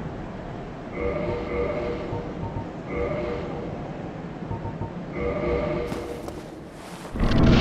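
Short electronic chimes beep several times.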